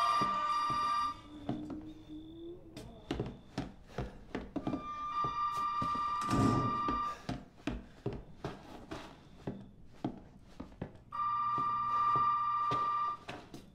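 Footsteps thud slowly on a creaky wooden floor.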